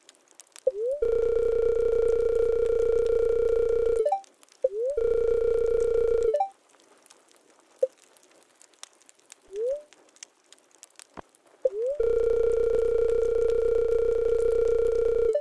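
A rapid electronic chirping sound plays in steady bursts.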